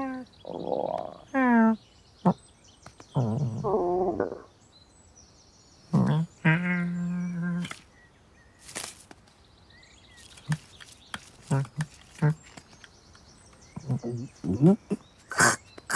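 A cat meows and chirps in several short bursts.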